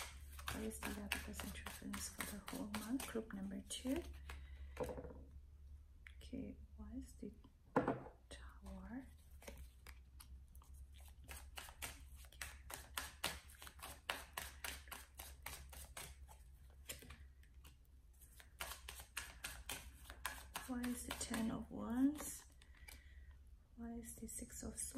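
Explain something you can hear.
Playing cards riffle and shuffle rapidly.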